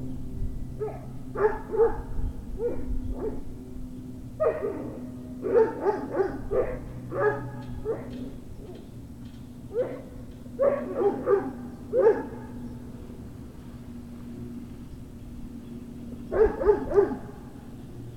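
Dogs growl and yip in short bursts while playing.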